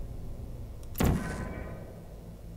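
A sci-fi gun fires with a sharp, crackling zap.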